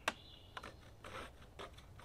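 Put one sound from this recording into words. A pencil scratches on wood.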